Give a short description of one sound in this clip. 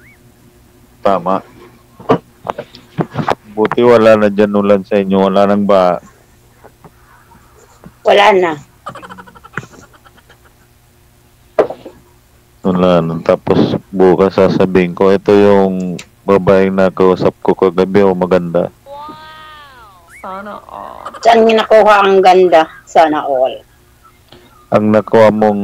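A middle-aged man talks over an online call.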